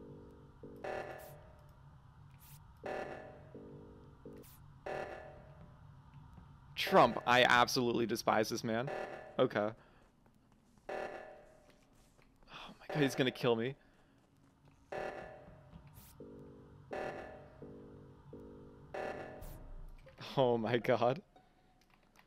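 An alarm blares in short repeating pulses.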